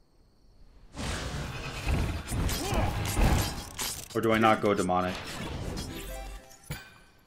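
Magic blasts and weapon clashes ring out in a fight.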